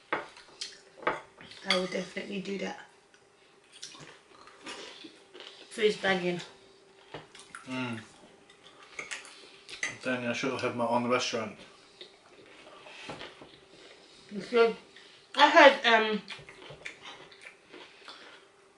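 Forks and knives clink and scrape on plates.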